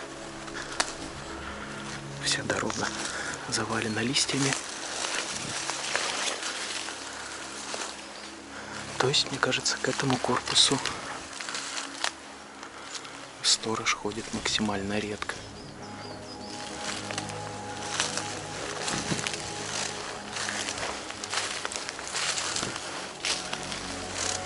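Footsteps crunch on dry fallen leaves.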